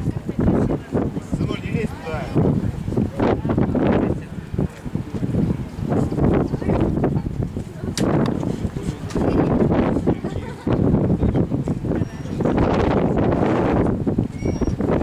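Strong wind gusts roar and buffet outdoors.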